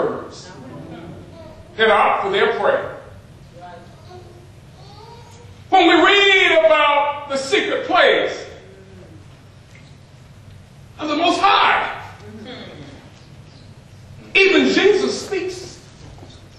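A man preaches passionately into a microphone in bursts, shouting at times, in a room with some echo.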